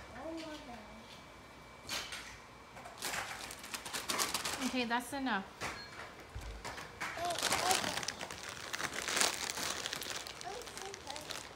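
Plastic wipes packaging crinkles and rustles as wipes are pulled out.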